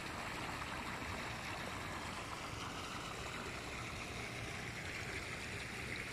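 Water gushes from a pipe into a shallow pool.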